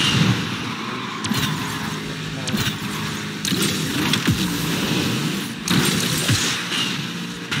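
A racing car engine roars and revs in a video game.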